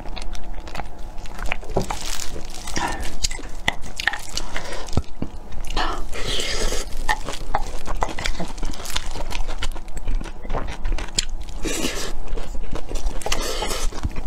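A wooden spoon scrapes and clinks against a bowl.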